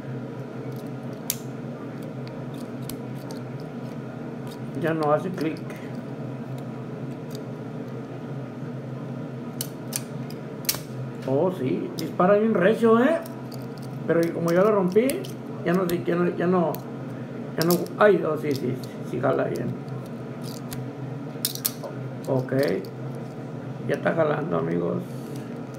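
Small plastic parts click and snap together.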